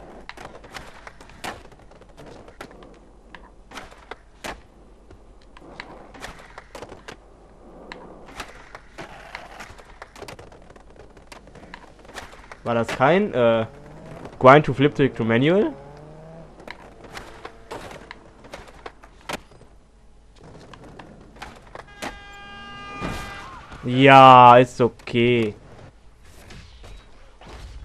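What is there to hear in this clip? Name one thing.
A skateboard clacks and rolls over concrete, with sharp pops as its tail strikes the ground.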